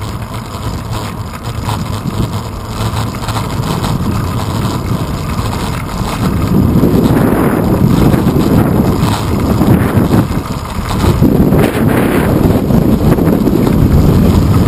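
Wind rushes loudly past the microphone, growing stronger.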